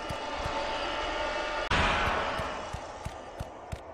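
A magical surge whooshes and fades.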